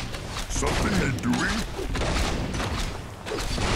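A magic spell crackles and bursts.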